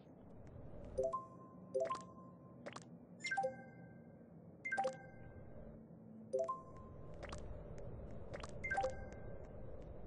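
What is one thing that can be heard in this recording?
Short electronic chimes ring out as game buttons are tapped.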